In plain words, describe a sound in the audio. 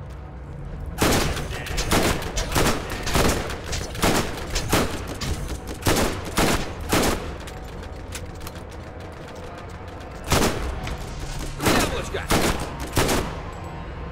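Rifle shots crack loudly, one after another.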